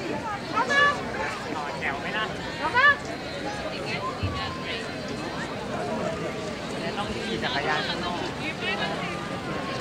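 A crowd of adults and children chatters nearby outdoors.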